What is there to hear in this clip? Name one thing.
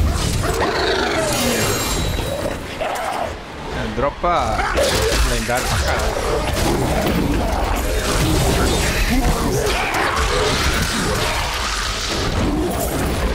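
Spell blasts and weapon hits crash and crackle in quick bursts.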